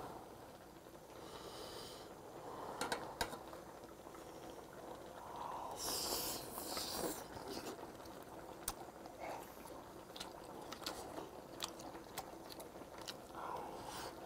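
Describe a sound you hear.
A man slurps and chews food noisily close to a microphone.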